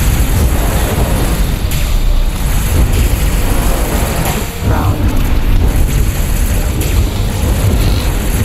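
A spaceship engine rumbles deeply and steadily.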